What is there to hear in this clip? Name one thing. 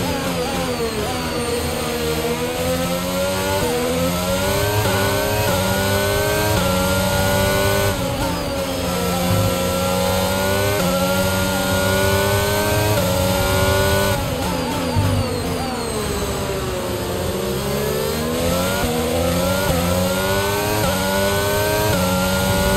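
A racing car engine screams, rising in pitch through each gear and dropping sharply at every shift.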